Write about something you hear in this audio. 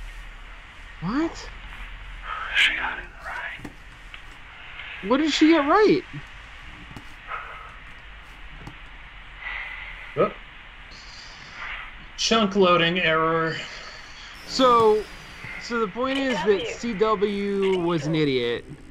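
Men talk with animation over an online call.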